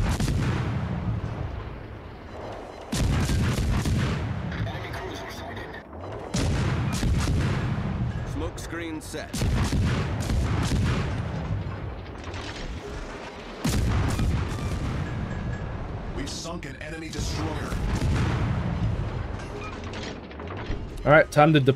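Shells splash and explode in the water.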